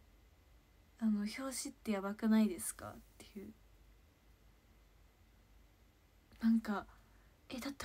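A young woman speaks calmly and close by, in short bursts.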